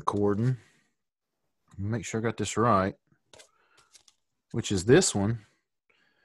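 A middle-aged man speaks calmly and close to a microphone, in short phrases.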